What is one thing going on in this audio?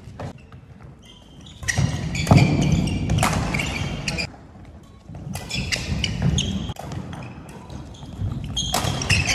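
Shoes squeak sharply on a wooden floor in an echoing hall.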